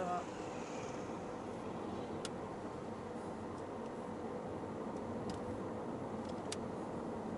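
Wind rushes past a moving car.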